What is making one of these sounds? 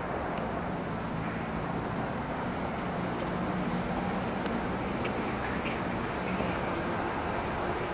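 Skateboard wheels roll over concrete outdoors.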